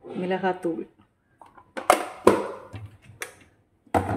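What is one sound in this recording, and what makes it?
A plastic jar lid clicks shut.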